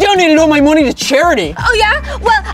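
A young woman shouts back loudly, close by.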